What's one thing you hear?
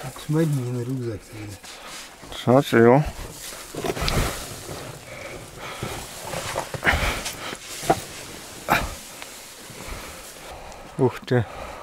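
Small stones crunch and clatter underfoot.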